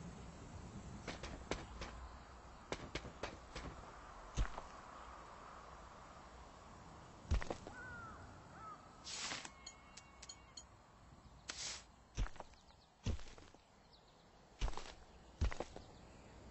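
Short clicking thuds sound as building pieces are set in place.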